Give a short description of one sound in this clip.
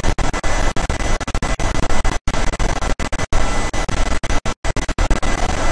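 A train's wheels clatter over a metal bridge.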